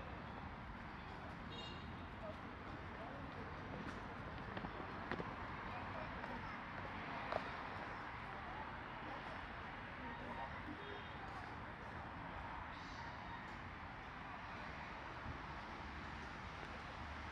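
Footsteps scuff on paving outdoors.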